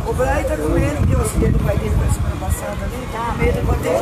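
Men talk outdoors nearby.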